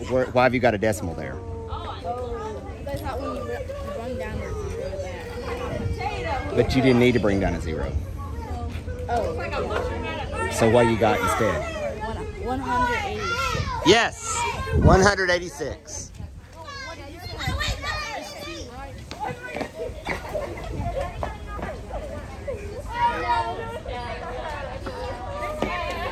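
Children chatter outdoors in the background.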